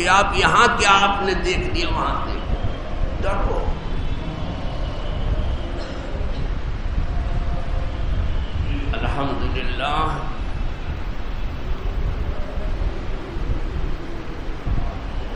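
An elderly man speaks calmly through a microphone, with echo.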